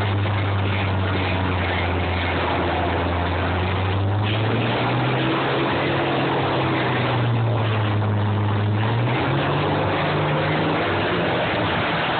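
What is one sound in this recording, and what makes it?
Combine harvester engines roar loudly and change pitch as they push against each other.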